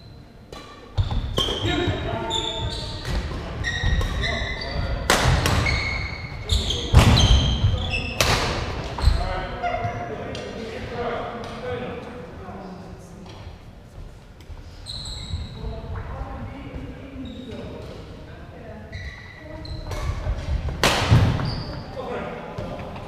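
Badminton rackets smack a shuttlecock back and forth in a large echoing hall.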